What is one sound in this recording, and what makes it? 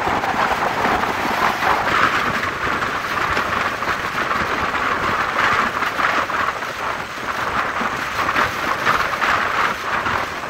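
Wind rushes and buffets past a moving vehicle.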